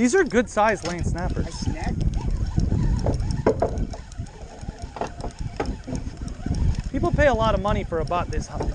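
A fishing reel clicks and whirs as it is cranked.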